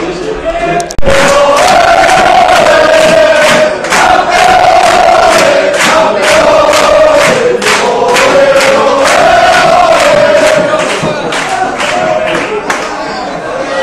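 A crowd of fans sings loudly together.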